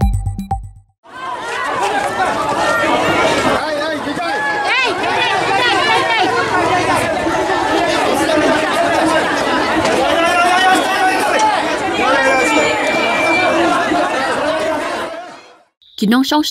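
A crowd of men and women talk and shout excitedly outdoors.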